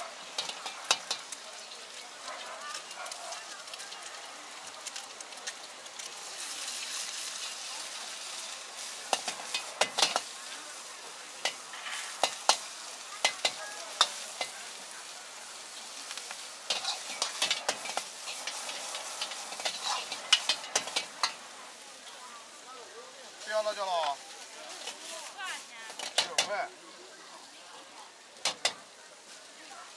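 A metal ladle clanks and scrapes against a steel wok.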